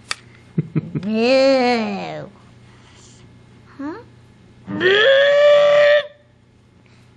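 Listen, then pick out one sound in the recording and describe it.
A young child makes playful mooing sounds up close.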